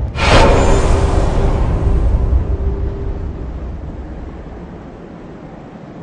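A fiery whoosh flares up suddenly and slowly fades into a low rumble.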